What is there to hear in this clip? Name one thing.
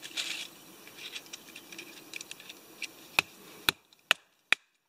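A knife shaves and scrapes thin curls from a stick of wood.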